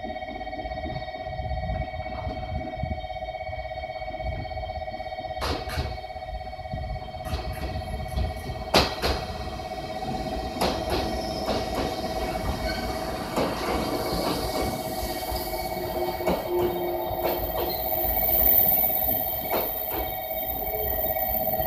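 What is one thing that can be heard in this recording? A train rumbles closer and rolls slowly past.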